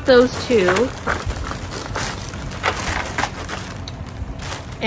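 Paper rustles as a package is handled.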